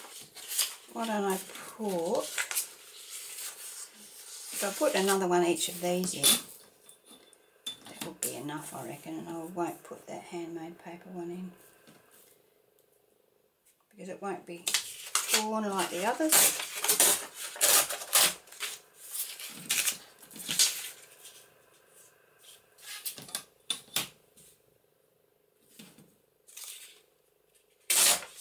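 Sheets of paper rustle and slide against each other.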